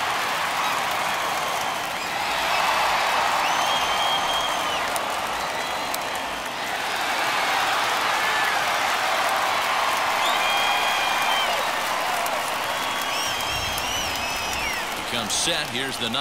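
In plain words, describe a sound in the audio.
A large crowd cheers, claps and whistles loudly.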